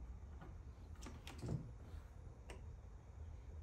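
Battery cables and clips click and rattle as they are handled.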